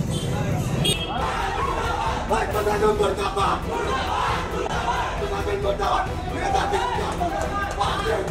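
A crowd of men shout in an echoing room.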